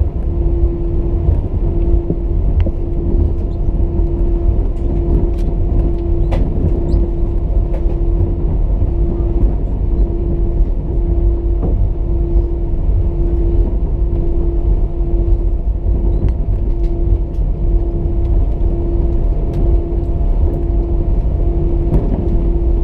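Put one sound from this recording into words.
A plane rumbles and rattles as it taxis.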